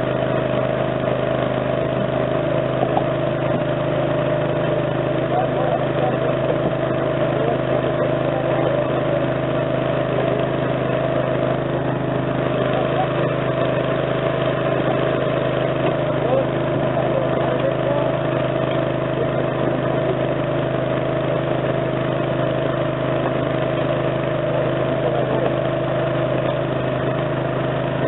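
A hydraulic rescue tool's power unit drones steadily close by.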